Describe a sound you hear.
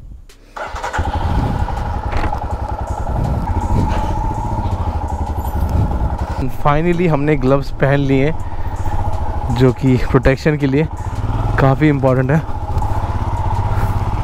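A motorcycle engine runs with a steady, low rumble.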